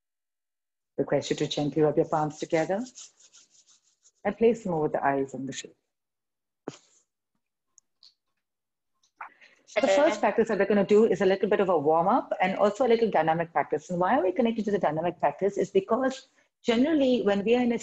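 A young woman speaks calmly, giving instructions, heard through an online call.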